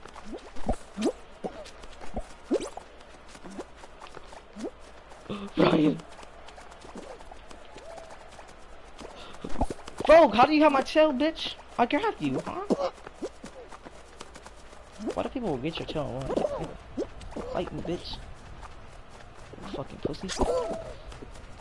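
Cartoon characters' footsteps patter quickly in a game.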